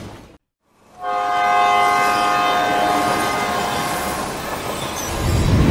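A train horn blares.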